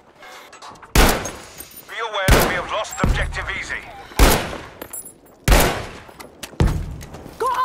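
A rifle fires loud, sharp shots that boom and echo away.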